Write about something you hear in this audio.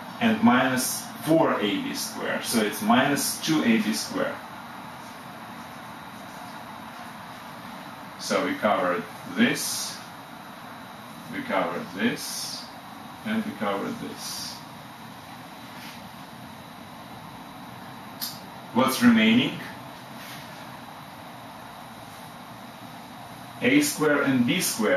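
A middle-aged man explains calmly in short bursts, close by.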